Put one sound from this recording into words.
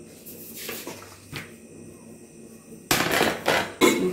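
A plastic board knocks down onto a hard surface.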